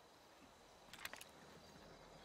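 A rifle clicks and rattles as it is raised.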